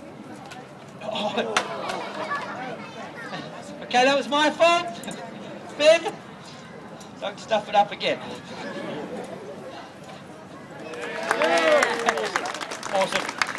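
A crowd murmurs and calls out.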